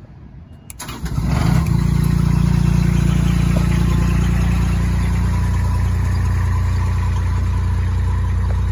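A machine's engine hums steadily and loudly.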